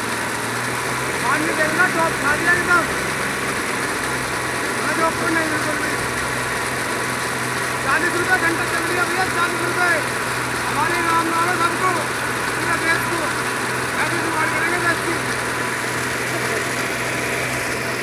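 Water gushes out of a pipe and splashes onto the ground.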